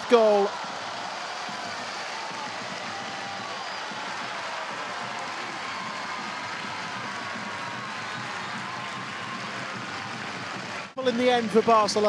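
A large stadium crowd cheers and claps.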